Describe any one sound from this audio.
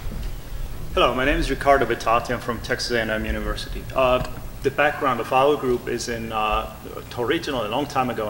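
A middle-aged man speaks with animation through a microphone in a large room.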